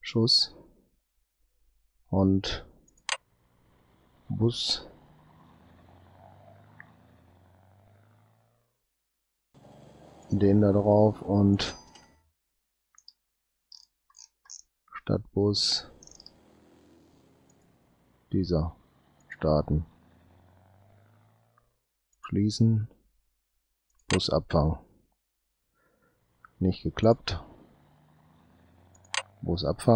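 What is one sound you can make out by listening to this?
Interface clicks sound as game windows open and close.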